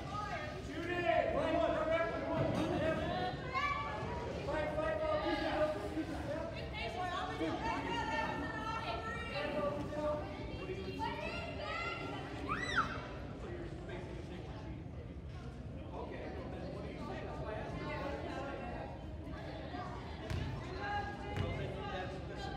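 Players call out and shout across a large echoing gym.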